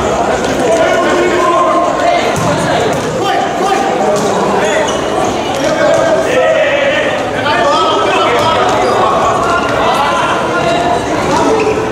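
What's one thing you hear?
A crowd of young spectators chants and cheers.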